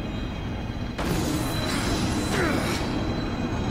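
A magical energy blast whooshes and crackles loudly.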